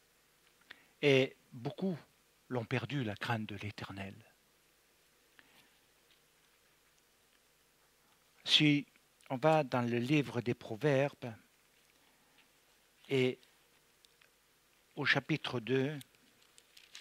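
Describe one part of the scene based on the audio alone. An elderly man reads aloud in a chanting voice into a microphone, in short bursts with pauses.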